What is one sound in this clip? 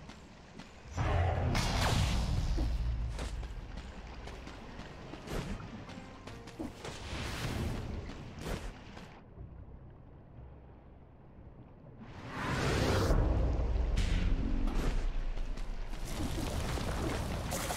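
A deep magical whoosh swells and rumbles as a portal opens.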